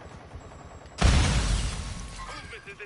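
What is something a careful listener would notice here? A rifle fires a loud burst of shots.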